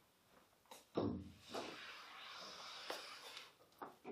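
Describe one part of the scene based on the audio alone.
Chalk scrapes and taps on a board.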